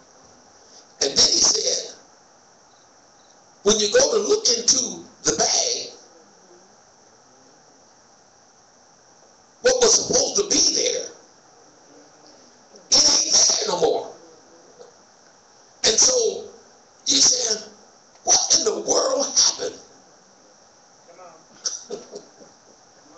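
A man speaks slowly into a microphone, with pauses, in a large echoing room.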